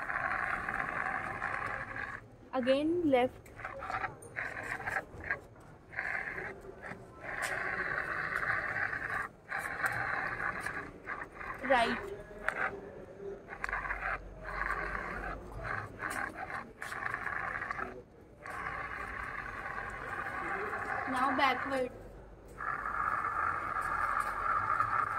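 A small robot car's motors whir as it rolls over paving stones.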